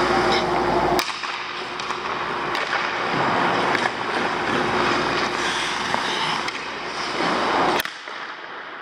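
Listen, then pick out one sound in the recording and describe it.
A hockey puck clacks sharply against a stick.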